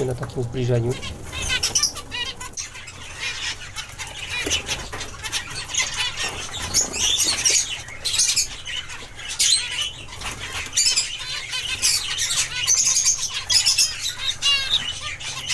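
Small birds chirp and twitter rapidly, close by.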